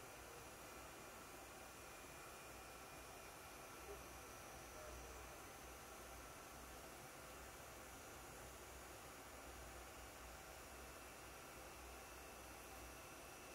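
Fingertips faintly tap and nudge small plastic pieces on a palm.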